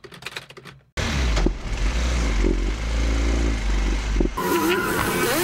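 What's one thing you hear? A motor tricycle's engine rumbles steadily up close.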